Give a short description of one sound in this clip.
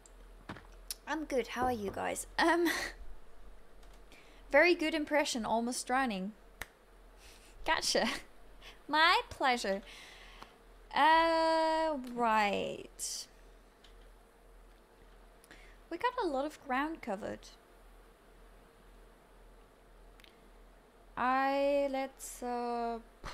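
A young woman talks animatedly into a close microphone, in short bursts.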